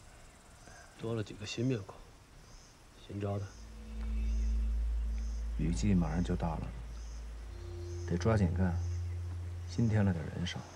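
A middle-aged man speaks calmly and gravely, close by.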